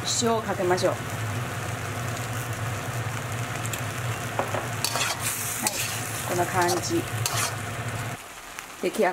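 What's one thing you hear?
Food sizzles and bubbles in a hot wok.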